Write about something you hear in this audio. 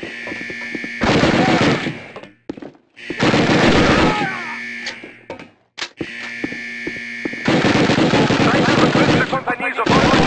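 A submachine gun fires rapid bursts that echo off hard walls.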